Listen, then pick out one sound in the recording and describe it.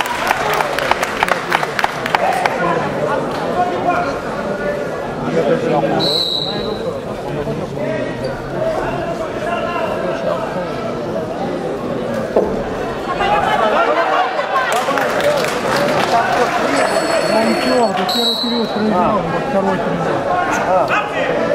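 A crowd in a large hall chatters and shouts throughout.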